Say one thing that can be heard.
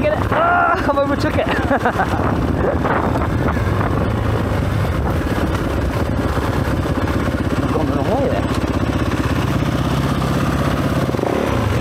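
A dirt bike engine revs and sputters up close.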